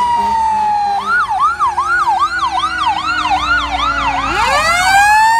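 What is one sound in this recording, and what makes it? An ambulance siren yelps rapidly up and down.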